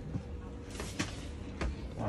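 Footsteps thud on a hard floor nearby.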